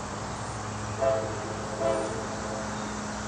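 A train horn gives two short blasts.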